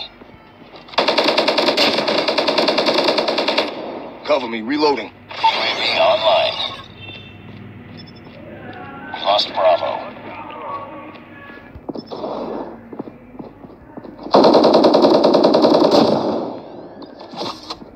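An automatic rifle fires in rapid, rattling bursts.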